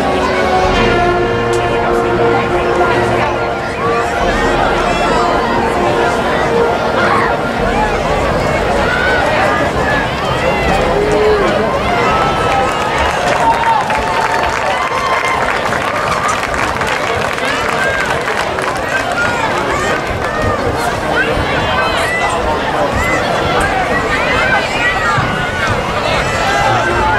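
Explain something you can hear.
A crowd cheers and chatters.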